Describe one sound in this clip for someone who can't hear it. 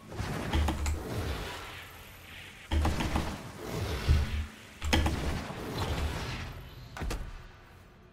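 A fiery blade whooshes and roars in short bursts.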